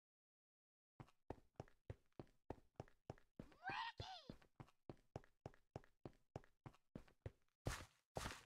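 Footsteps patter steadily on a stone path.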